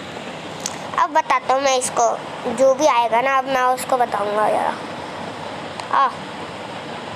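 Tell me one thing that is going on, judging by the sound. A boy speaks close to a phone microphone with animation.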